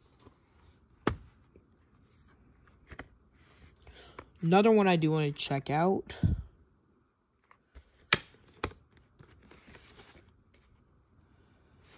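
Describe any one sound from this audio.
A plastic case is handled with light taps and rattles.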